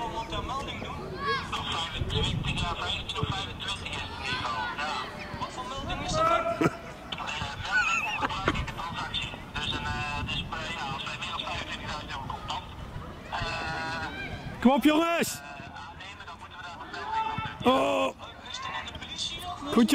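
Young players shout and call out to each other across an open outdoor pitch.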